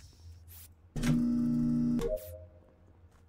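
A short electronic chime plays.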